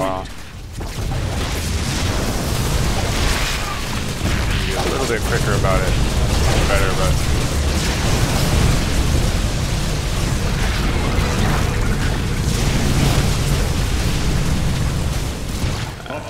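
Laser weapons fire in rapid bursts during a battle.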